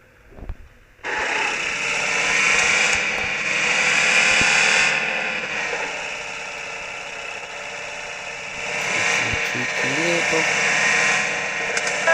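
A vehicle engine roars steadily as a jeep drives over rough ground.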